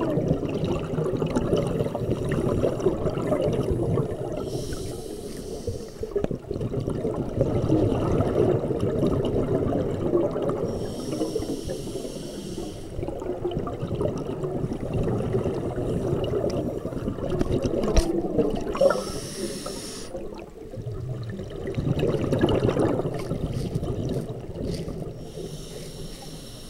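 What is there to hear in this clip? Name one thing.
Water churns with a low, steady rumble.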